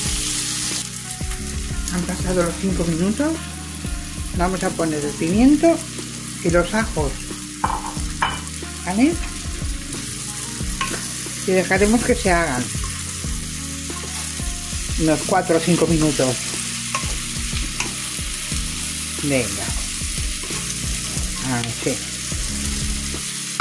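Onions sizzle in a hot pan.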